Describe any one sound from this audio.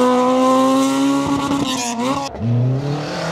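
A car engine roars past at speed.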